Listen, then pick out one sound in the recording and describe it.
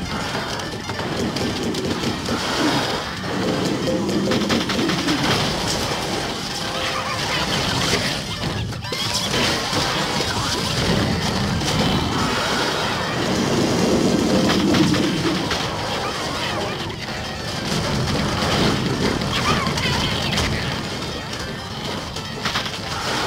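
Game plants fire rapid popping shots.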